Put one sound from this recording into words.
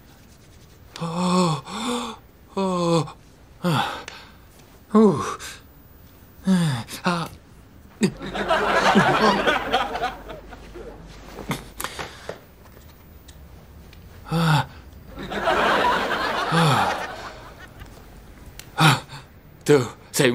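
A man groans and whimpers in pain nearby.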